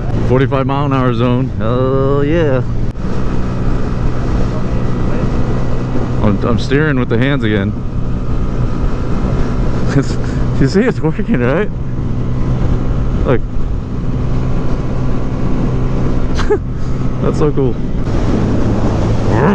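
A motorcycle engine hums steadily while riding at speed.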